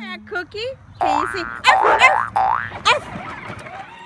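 A small dog barks excitedly close by.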